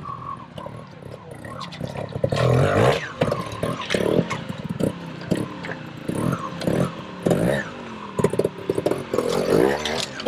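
Tyres knock and scrape over rocks.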